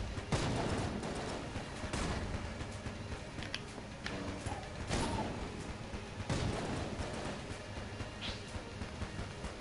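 Laser beams hum and crackle steadily.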